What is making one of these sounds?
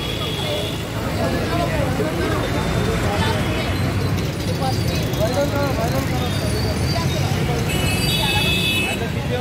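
A middle-aged woman argues loudly and with animation close by.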